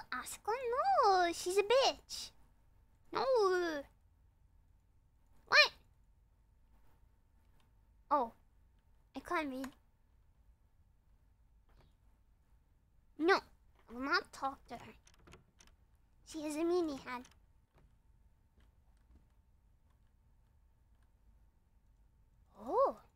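A young woman speaks with animation into a close microphone, in short bursts with pauses.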